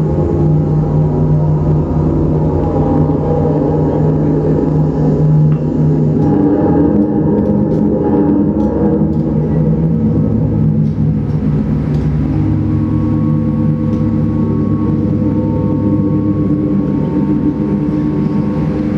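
Layered electronic drones hum steadily and slowly shift in tone.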